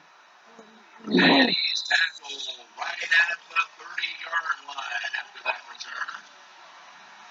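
A young boy talks loudly and excitedly close by.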